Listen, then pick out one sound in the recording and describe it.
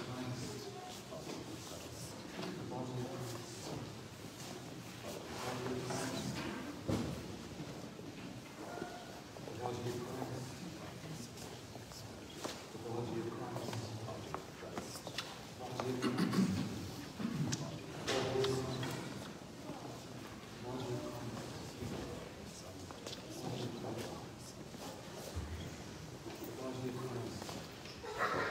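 An elderly man speaks quietly, in a room that echoes a little.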